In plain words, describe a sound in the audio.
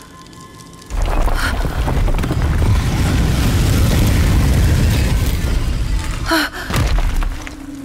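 A heavy stone door grinds and rumbles open.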